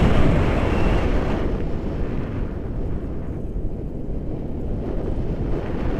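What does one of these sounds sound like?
Wind rushes loudly past, buffeting the microphone.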